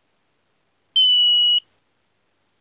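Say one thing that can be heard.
A radio transmitter gives a single short electronic beep.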